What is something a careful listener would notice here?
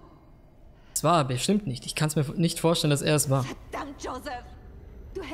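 A young woman speaks in anguish, upset and reproachful.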